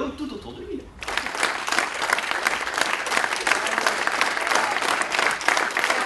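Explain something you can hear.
An audience claps and applauds loudly.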